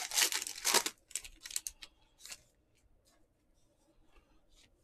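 Trading cards slide and rustle against each other.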